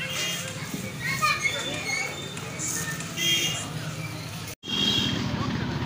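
Motorcycles pass by on the street.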